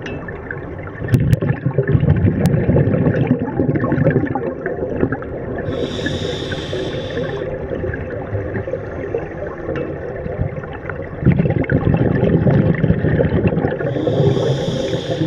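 Exhaled bubbles rumble and gurgle from a scuba regulator underwater.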